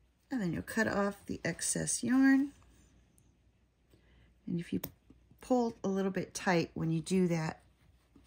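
Small scissors snip through yarn.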